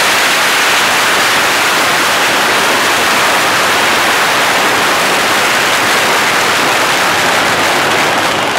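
Fireworks crackle and hiss loudly and without a break close by.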